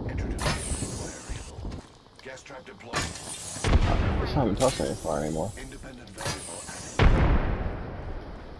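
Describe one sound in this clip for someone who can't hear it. Loud blasts boom and rumble.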